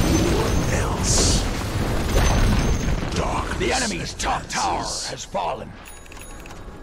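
Magic spells whoosh and crackle in a busy fantasy battle.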